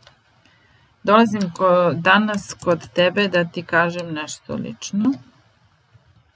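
A woman speaks clearly into a microphone, close up, as if reading out.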